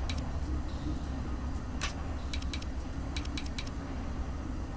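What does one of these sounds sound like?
Metal rings click and clack as they turn.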